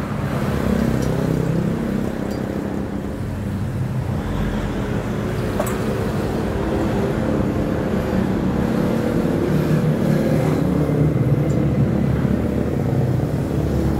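A metal motorcycle cylinder head is scrubbed and sloshed in a basin of liquid.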